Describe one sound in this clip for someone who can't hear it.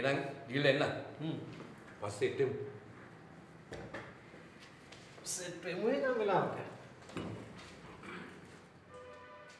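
An older man answers calmly.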